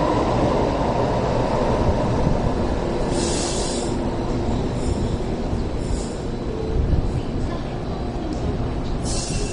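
A light rail train rumbles slowly into the stop.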